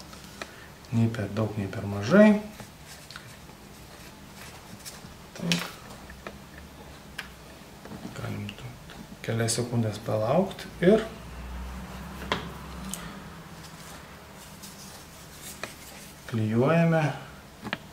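A man speaks calmly and close by, explaining.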